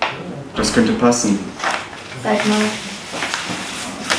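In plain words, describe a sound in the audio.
Paper sheets rustle and slide on a table.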